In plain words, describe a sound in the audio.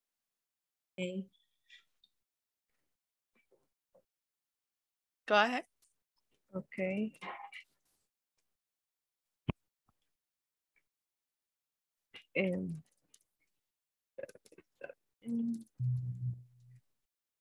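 An adult speaks in short phrases over an online call.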